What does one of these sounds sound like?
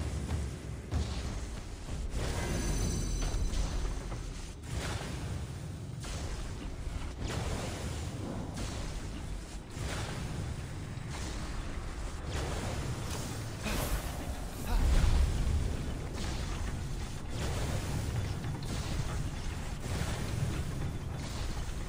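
Fireballs whoosh past one after another.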